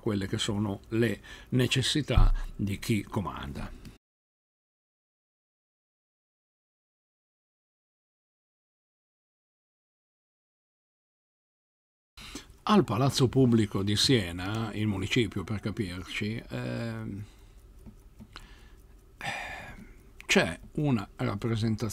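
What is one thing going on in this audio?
An older man talks with animation into a close microphone.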